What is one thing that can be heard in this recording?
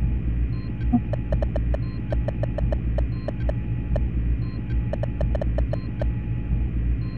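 Keys click in quick, uneven taps as text is typed.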